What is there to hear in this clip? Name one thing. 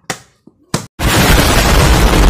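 A huge explosion roars loudly.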